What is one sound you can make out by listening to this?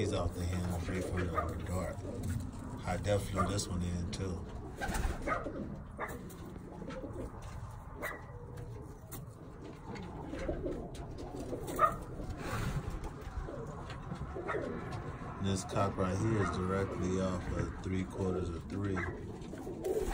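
Pigeons coo in low, throaty bursts close by.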